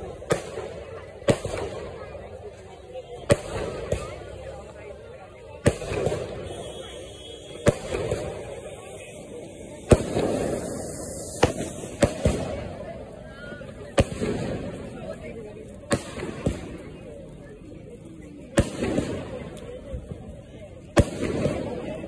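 Fireworks burst overhead with loud, sharp bangs, one every second or two.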